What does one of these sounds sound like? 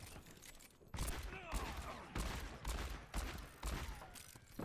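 A revolver fires several loud shots that echo.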